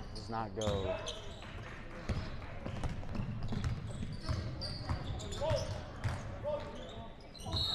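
A basketball bounces on the court in quick thuds.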